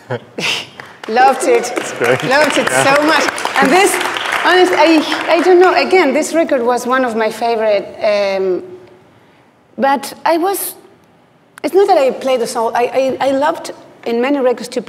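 A middle-aged woman speaks with animation into a microphone.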